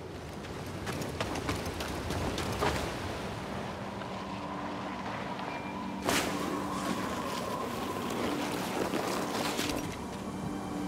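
Feet slide and hiss across a wet slope.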